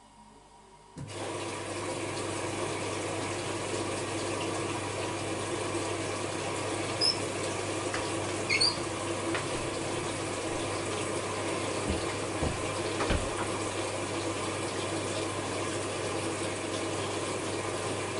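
Clothes tumble and thud softly inside a washing machine drum.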